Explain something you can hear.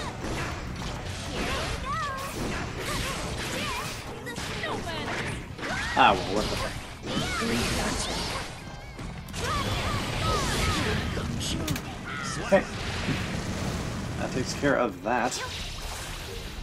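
Fighting game characters land sharp hits.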